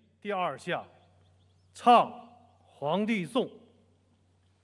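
A man speaks formally into a microphone, heard through loudspeakers outdoors.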